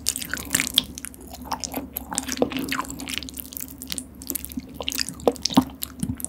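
Thick sauce squelches wetly as noodles are lifted close up.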